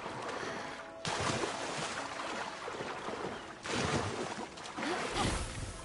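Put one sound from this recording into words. A creature bursts out of water with a heavy splash.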